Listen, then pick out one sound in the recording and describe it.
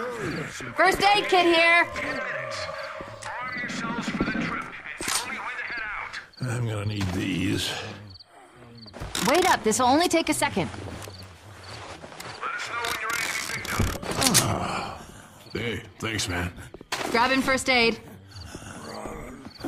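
Men talk to each other in urgent, animated voices.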